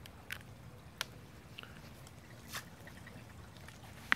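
Water splashes lightly in a small pond.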